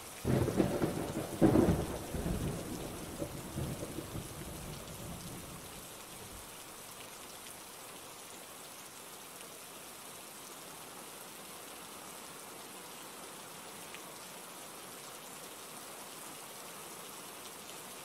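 Rain falls steadily on leaves outdoors.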